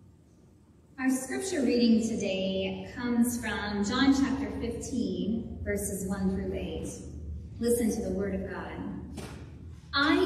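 A young woman reads aloud calmly through a microphone in a large echoing room.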